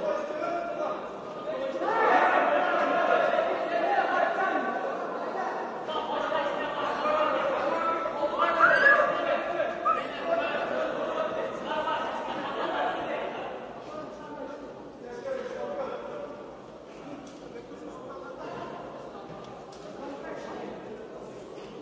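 A man shouts instructions close by in an echoing hall.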